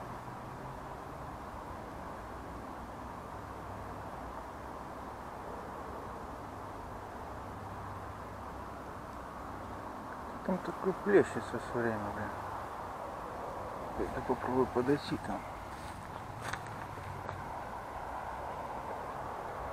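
Wind blows softly and steadily outdoors.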